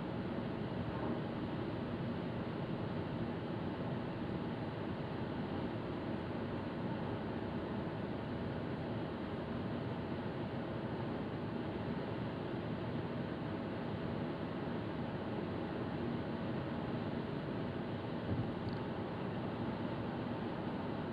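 A car drives steadily along a road, with a low rumble of tyres and engine from inside the car.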